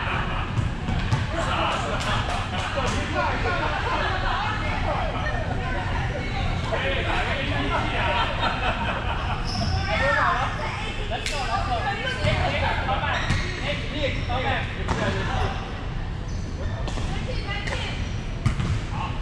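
Voices of men and women talk and call out in a large echoing hall.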